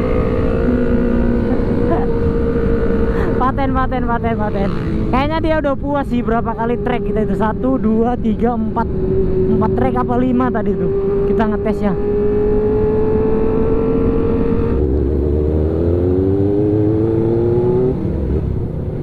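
A motorcycle engine hums steadily while riding at speed.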